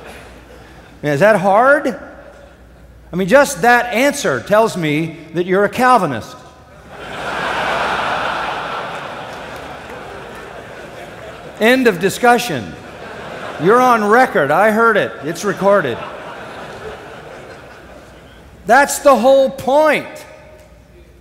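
An elderly man speaks with animation into a microphone in a large hall, pausing between phrases.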